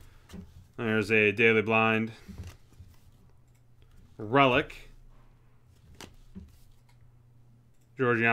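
Cardboard cards slide and tap softly between fingers.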